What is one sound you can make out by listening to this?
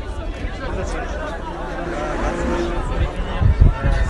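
A car engine idles close by.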